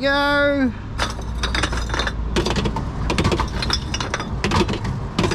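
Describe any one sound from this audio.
Glass bottles clink against each other.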